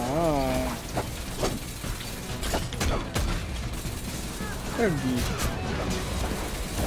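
Blades clash with sharp metallic strikes.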